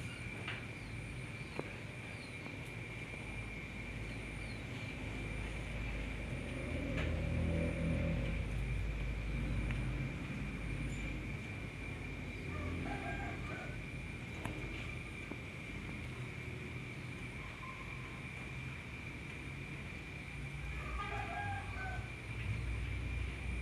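A hand softly strokes a baby monkey's fur.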